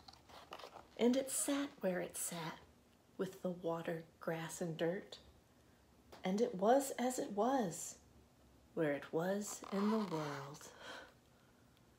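A woman reads aloud calmly and close by.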